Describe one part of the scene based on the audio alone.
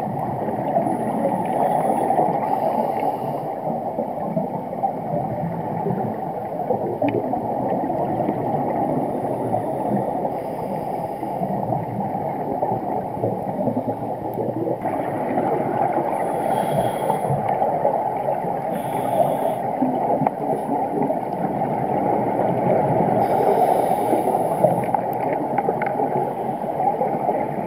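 Water rushes with a low, steady muffled roar.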